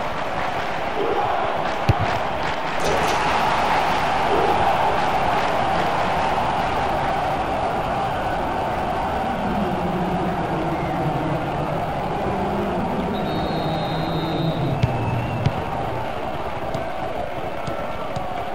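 A stadium crowd roars and cheers throughout.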